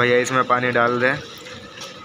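Water pours from a bucket into a metal bowl.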